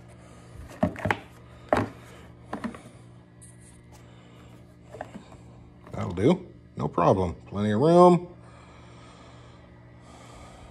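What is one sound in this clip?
A plastic battery box knocks and scrapes against a metal frame.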